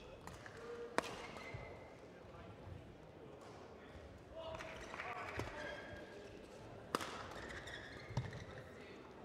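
Rackets hit a shuttlecock back and forth with sharp pops in a large echoing hall.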